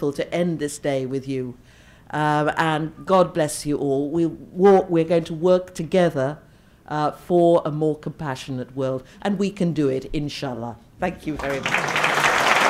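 An older woman speaks with animation into a microphone.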